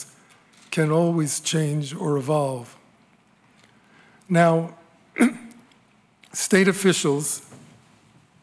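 An elderly man speaks calmly and slowly into a microphone, in short phrases with pauses.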